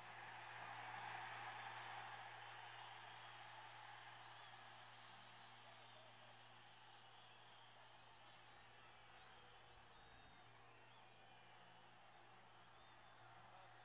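A large stadium crowd roars in the distance.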